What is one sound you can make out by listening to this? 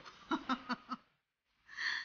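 A woman laughs briefly close by.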